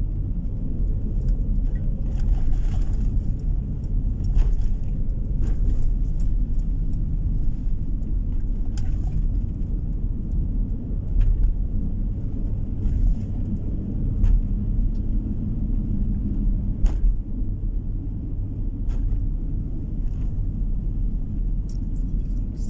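Tyres rumble on a wet road.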